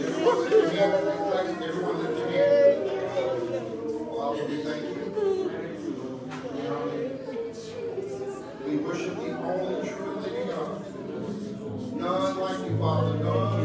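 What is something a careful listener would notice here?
A woman sings into a microphone through loudspeakers.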